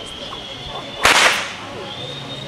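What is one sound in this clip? A gunshot cracks nearby.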